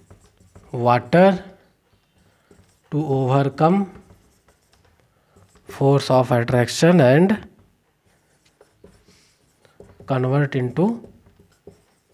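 A young man speaks calmly and clearly, close to a microphone, in short phrases with pauses.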